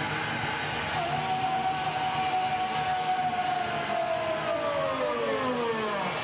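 An electric guitar holds a long sustained note that slowly bends down in pitch.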